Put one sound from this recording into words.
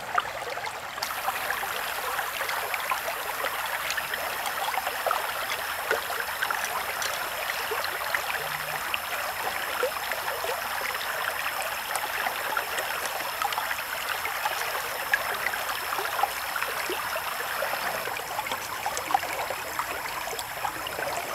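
A stream of water burbles and splashes close by.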